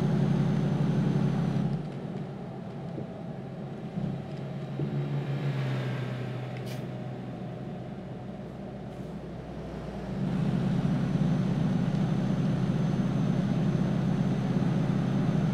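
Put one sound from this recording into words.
A truck engine drones steadily, louder at the start and end.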